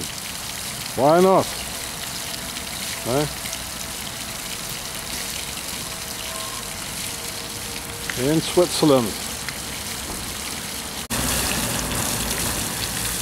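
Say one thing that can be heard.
Water splashes steadily from a fountain into a basin.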